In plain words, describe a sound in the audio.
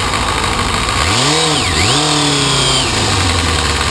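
A motorcycle engine revs up, drops and revs up again.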